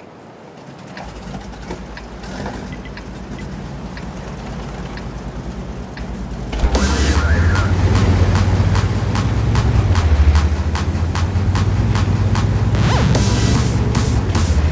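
A tank engine rumbles steadily and grows louder.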